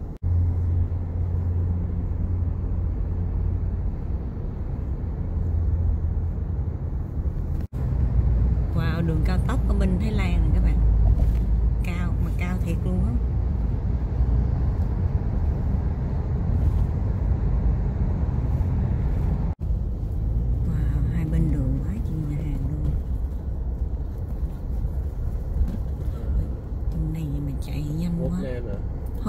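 A car's engine and tyres rumble steadily.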